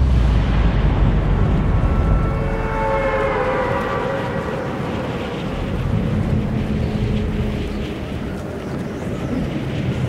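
Wind rushes past as figures glide down through the air.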